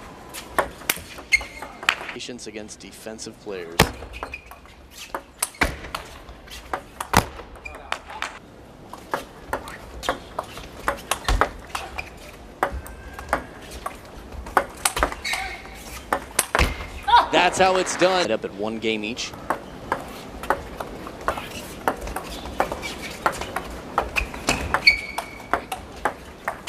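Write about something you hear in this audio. A table tennis ball clicks sharply back and forth off paddles and the table.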